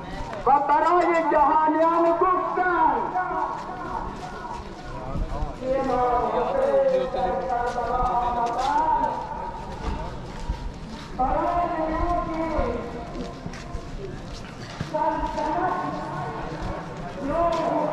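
A man chants a slow, mournful lament in long sung phrases.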